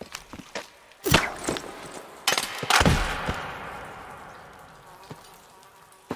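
A heavy object crashes down and rings out with a long echo.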